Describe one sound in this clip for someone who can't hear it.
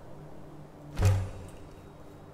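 A heavy metal clank rings out once.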